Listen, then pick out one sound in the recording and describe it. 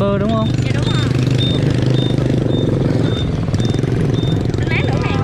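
A motorbike engine idles close by with a low steady hum.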